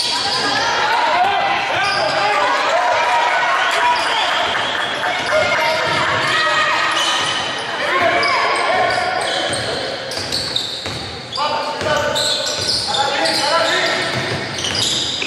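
A crowd of spectators chatters and calls out in an echoing hall.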